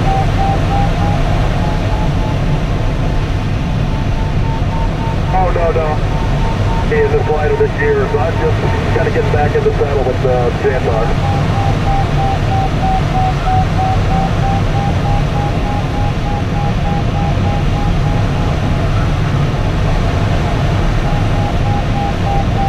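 Wind rushes loudly and steadily past a glider's canopy.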